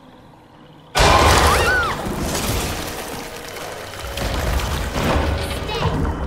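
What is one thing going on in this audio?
A creature snarls and growls loudly.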